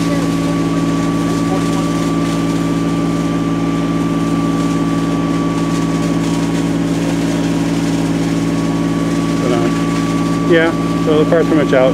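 Flames crackle as a tree burns.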